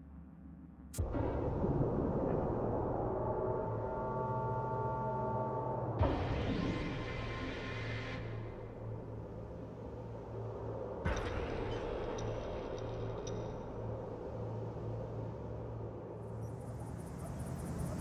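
Loud, dramatic music with deep drones plays.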